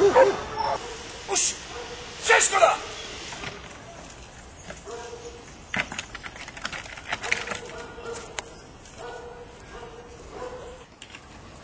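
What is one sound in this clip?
A man calls out short commands outdoors.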